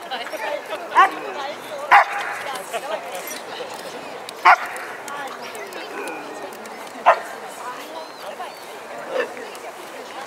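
Dogs bark in sharp bursts nearby.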